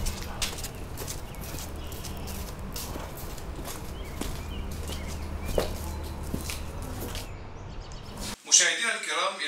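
Footsteps walk slowly on a paved path.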